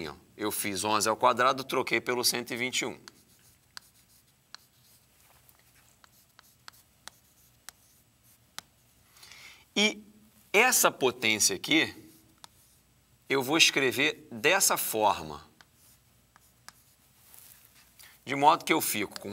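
A man explains calmly and clearly, close by.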